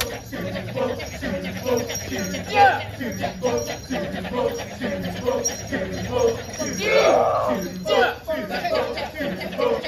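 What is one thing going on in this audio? A large group of men chants in a fast, rhythmic chorus outdoors.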